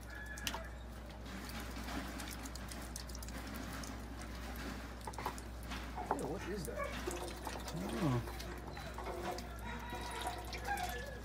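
Ducks peck and dabble at food in a bowl.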